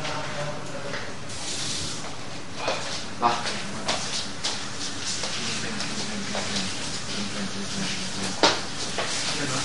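Bare feet thump and shuffle on a wooden floor.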